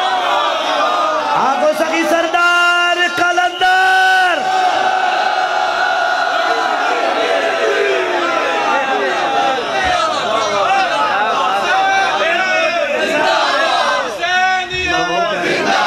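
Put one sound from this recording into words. A large crowd of men chants loudly together.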